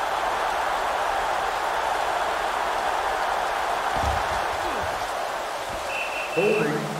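A stadium crowd murmurs and cheers steadily in the distance.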